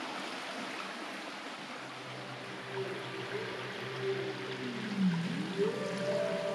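A shallow stream trickles and burbles over stones.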